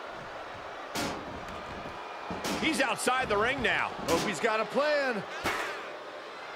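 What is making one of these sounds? Bodies thud heavily onto a wrestling ring.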